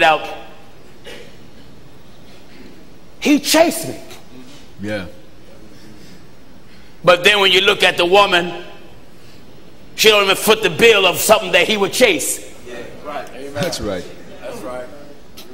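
A man preaches with animation through a microphone, in bursts with pauses.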